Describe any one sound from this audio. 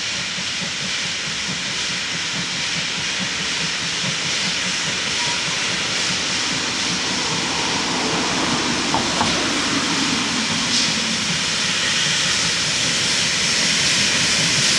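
A steam locomotive chuffs steadily as it hauls a heavy freight train, growing louder as it approaches.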